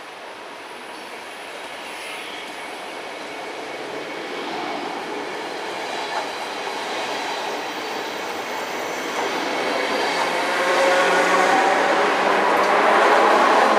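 Train wheels squeal and clatter on the rails.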